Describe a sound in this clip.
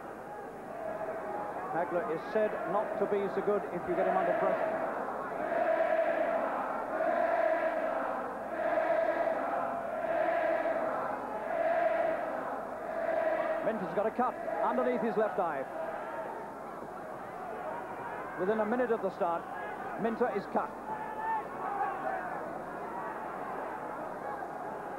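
A large crowd cheers and chants in a large echoing hall.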